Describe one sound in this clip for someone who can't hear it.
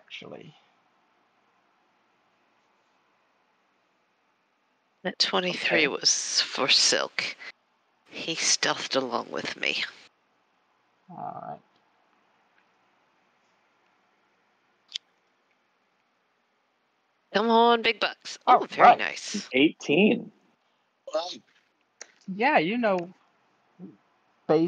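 A man talks casually over an online call.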